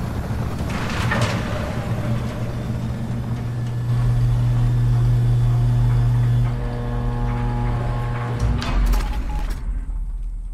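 Heavy hangar doors rumble open with a deep, steady drone.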